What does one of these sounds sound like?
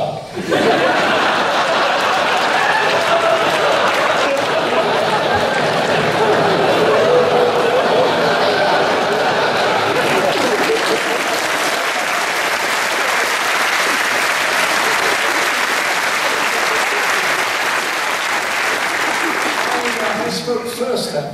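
A crowd cheers and applauds loudly in a large hall.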